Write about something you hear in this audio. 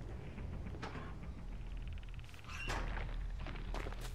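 A metal locker door bangs open.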